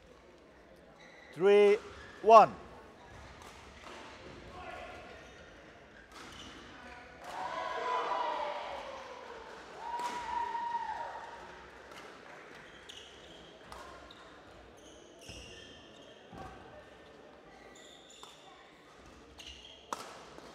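A shuttlecock is struck back and forth with sharp pops of rackets.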